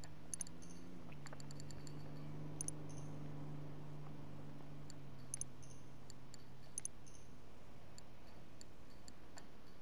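Short electronic clicks tick as menu buttons are pressed.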